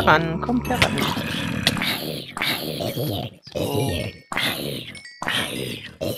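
A sword strikes a creature with quick, sharp thuds.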